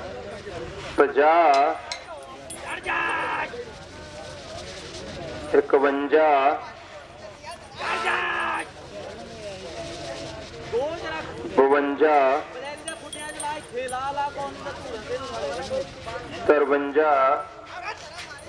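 A crowd of men shouts and whoops loudly in bursts.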